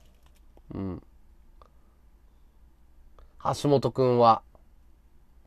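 A man speaks briefly and loudly into a microphone.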